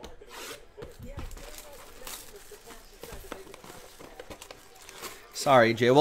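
Plastic shrink wrap crinkles as it is peeled off a box.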